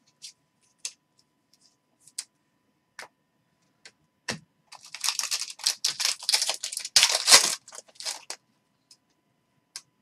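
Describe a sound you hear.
Trading cards slide and click against each other in hands.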